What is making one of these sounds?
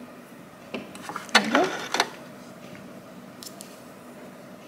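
Small clicks and taps come from a sewing machine being handled.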